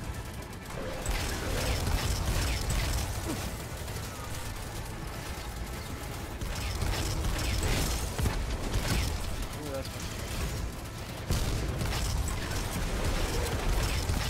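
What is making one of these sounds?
Sci-fi weapon fire blasts in bursts during a shooter game.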